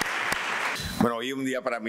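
A second man begins speaking into a microphone.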